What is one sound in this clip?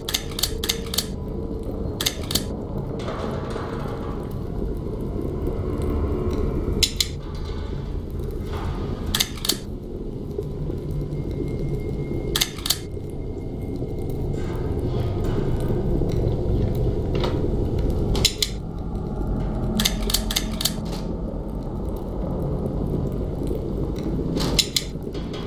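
Game pieces click sharply as they turn into place.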